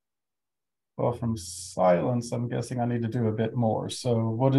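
A man speaks calmly into a close microphone, heard as on an online call.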